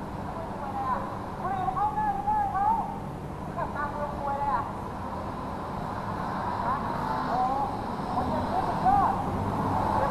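A man speaks agitatedly close by.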